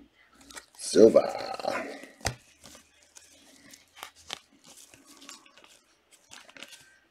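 A foil wrapper of a card pack crinkles in a pair of hands.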